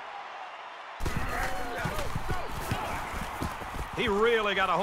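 Football pads clash as players collide.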